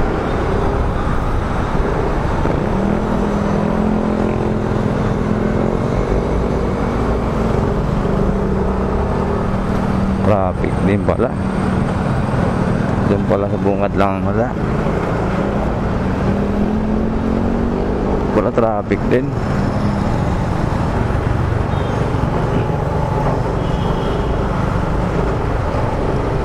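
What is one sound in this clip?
Traffic rumbles and murmurs all around in a busy street.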